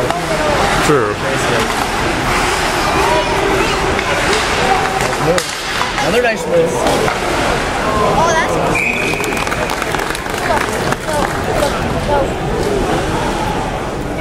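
A crowd of spectators chatters loudly all around in a large echoing arena.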